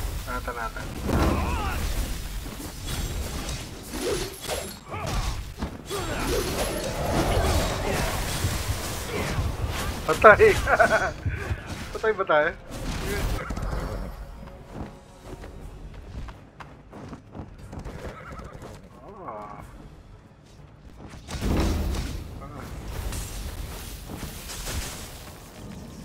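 Blades strike with quick, sharp hits.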